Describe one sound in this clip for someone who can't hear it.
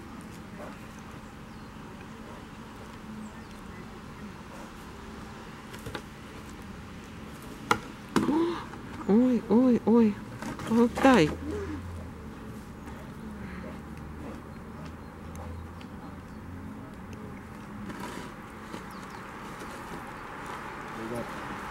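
A bear scrapes and shuffles across a wooden log.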